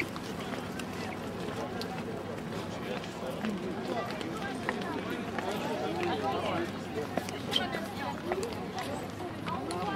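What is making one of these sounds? A crowd of tourists chatters outdoors.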